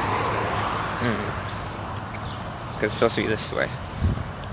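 A young man speaks casually close to a microphone.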